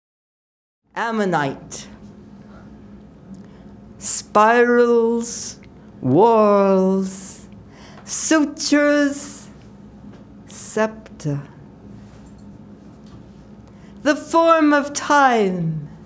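An elderly woman sings in long, sliding notes into a microphone.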